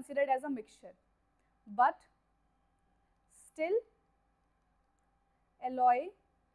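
A young woman speaks calmly and slowly in short phrases into a close microphone.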